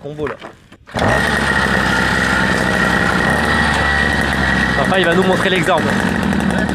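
A small go-kart motor whines loudly and steadily.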